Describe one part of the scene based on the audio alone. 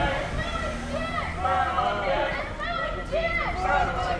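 A young man shouts close by.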